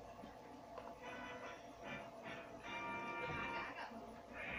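Cheerful game music plays from a television speaker.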